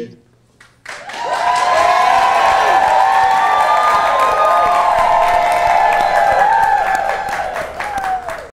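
A large crowd cheers and whoops loudly.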